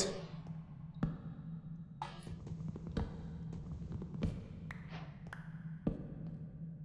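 Game blocks are placed with short soft knocks.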